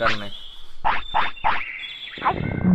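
Short electronic menu blips chirp in quick succession.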